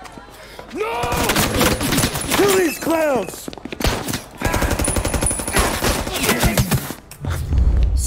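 Submachine guns fire in rapid bursts.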